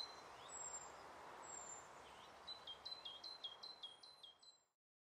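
A small bird gives high, shrill piping calls in quick succession.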